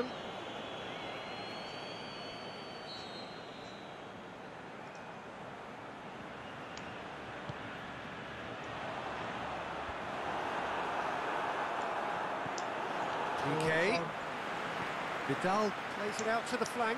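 A large stadium crowd roars steadily and swells louder.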